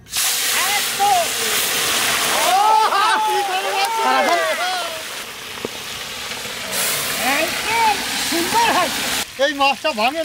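Hot oil sizzles and crackles loudly as food fries.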